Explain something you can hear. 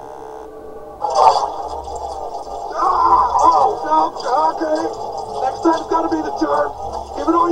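A cartoon man speaks with animation.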